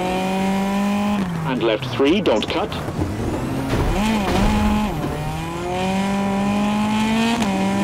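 Tyres crunch and skid on loose gravel.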